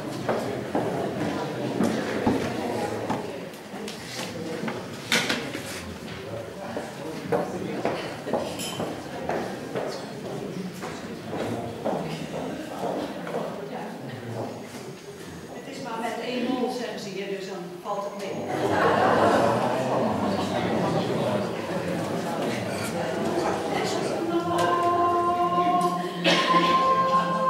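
A mixed choir sings together in a large echoing hall.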